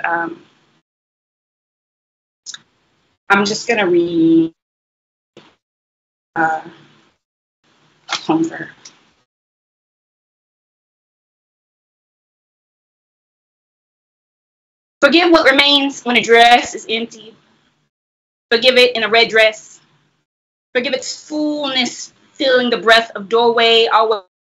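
A woman speaks expressively into a microphone, with pauses, as if reading aloud over an online call.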